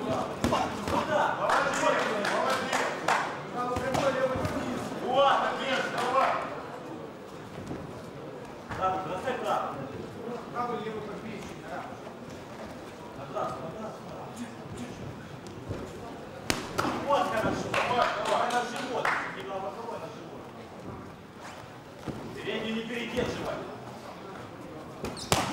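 A crowd of men shouts and cheers.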